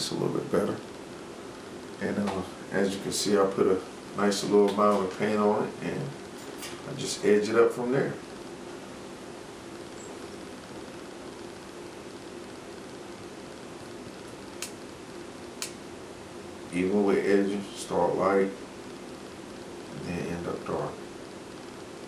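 A man talks calmly close by, in short bursts.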